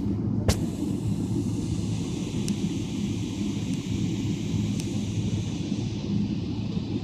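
Jet engines whine louder as the plane rolls along the runway.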